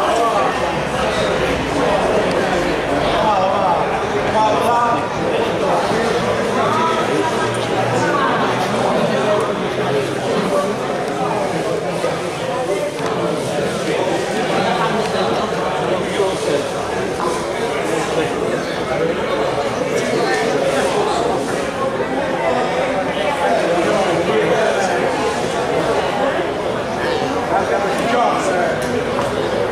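A crowd of men and women chatters steadily throughout a large echoing hall.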